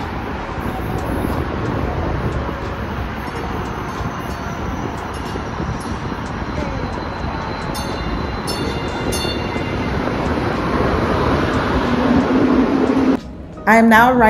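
A light-rail train rumbles in and brakes to a stop.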